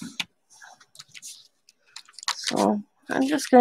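A hand rustles a sheet of tissue paper.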